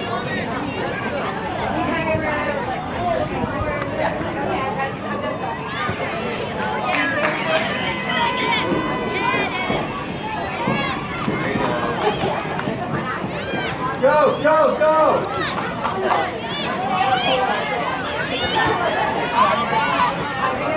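Spectators, men and women close by, talk and cheer outdoors.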